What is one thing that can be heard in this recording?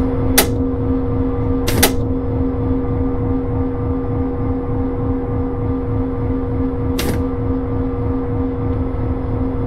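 A diesel locomotive engine idles with a steady, throbbing rumble and hum.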